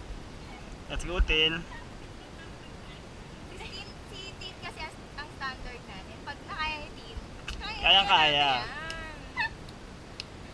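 A woman talks and calls out nearby, outdoors.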